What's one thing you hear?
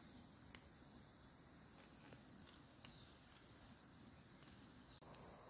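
Plant stems snap softly as they are picked by hand.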